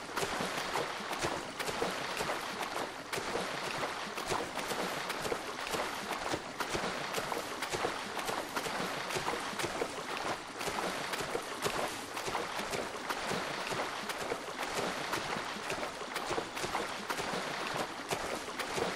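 Water splashes and churns steadily up close.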